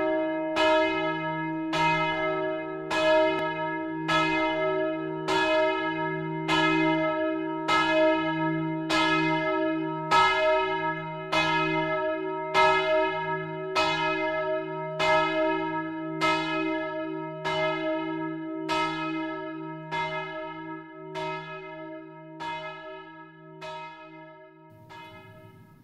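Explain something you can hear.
A church bell rings out in slow, steady strokes, each one ringing on and fading.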